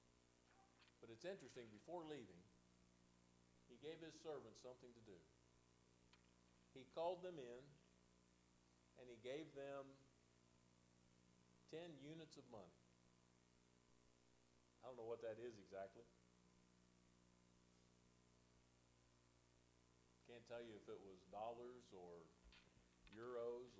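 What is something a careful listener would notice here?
An elderly man preaches slowly through a microphone in short phrases with long pauses, in a softly echoing hall.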